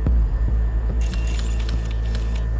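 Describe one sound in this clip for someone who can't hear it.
Electronic static crackles and hisses.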